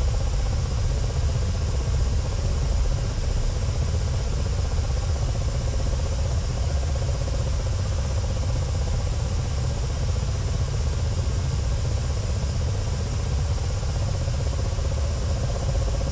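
A helicopter's rotor thumps steadily, heard from inside the cockpit.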